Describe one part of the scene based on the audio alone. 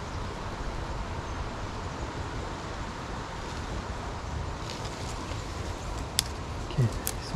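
Wind blows outdoors, rumbling low.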